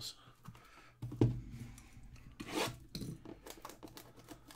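Plastic wrapping crinkles as a box is handled.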